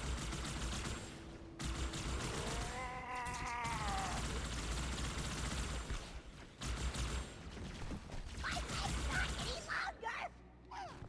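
Plasma guns fire rapid, hissing energy bursts.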